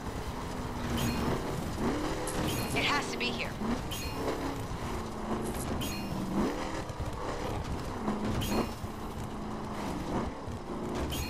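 Crates clatter and bang as a truck smashes through them.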